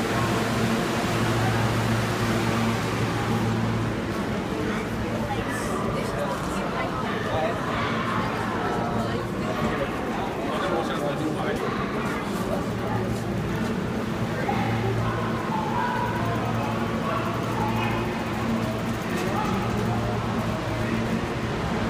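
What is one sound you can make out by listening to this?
A subway train hums while standing at the platform.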